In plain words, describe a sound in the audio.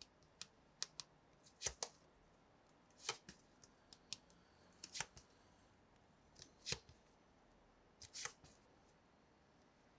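Stiff cards rustle and tap as they are shuffled by hand, up close.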